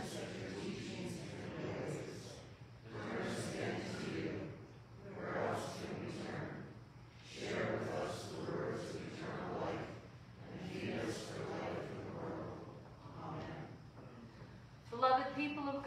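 A man speaks calmly through loudspeakers in a large echoing hall.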